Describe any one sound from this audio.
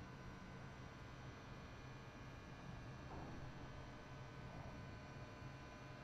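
A young man talks quietly into a headset microphone.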